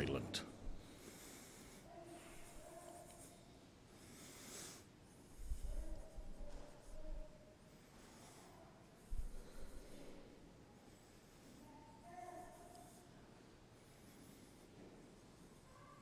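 A man speaks calmly and slowly through a microphone in a large echoing hall.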